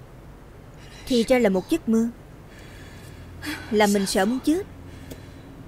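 A young woman speaks softly and anxiously, close by.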